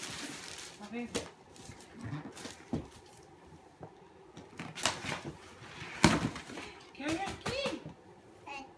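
Cardboard boxes and paper rustle and thump.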